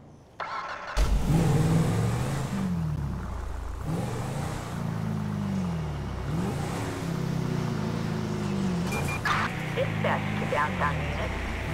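A car engine starts and revs up and down as the car drives off.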